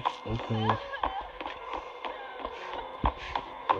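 Footsteps run across wooden floorboards.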